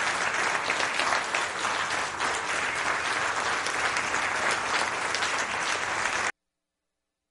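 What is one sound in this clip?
A band plays loudly in a large echoing hall.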